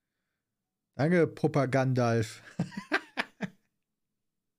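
A man laughs.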